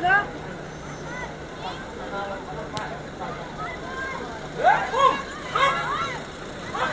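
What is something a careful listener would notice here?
Young women shout loudly to each other across an open field.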